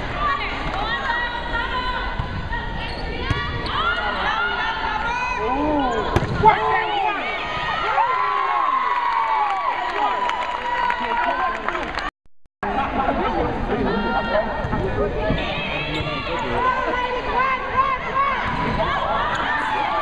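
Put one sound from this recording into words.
Young women call out and cheer in a large echoing gym.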